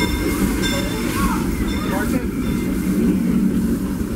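Steam hisses loudly from a locomotive.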